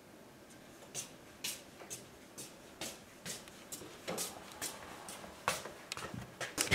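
A young girl walks with soft footsteps.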